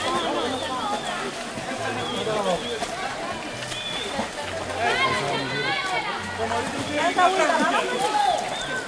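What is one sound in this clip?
Swimmers splash in water.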